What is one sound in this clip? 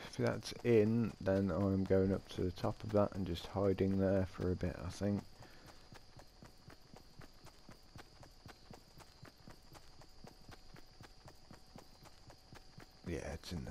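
Quick footsteps run steadily over grass.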